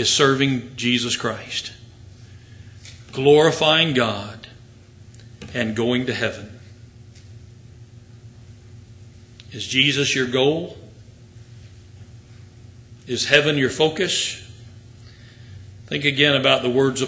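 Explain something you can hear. An elderly man speaks slowly and deliberately into a microphone, with long pauses.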